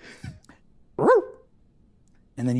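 A young woman exclaims in surprise.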